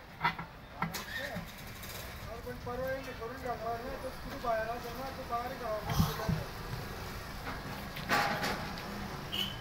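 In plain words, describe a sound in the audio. A steel tyre lever clanks against a steel truck wheel rim.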